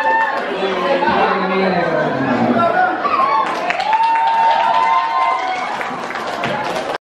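A group of young people sings together into a microphone.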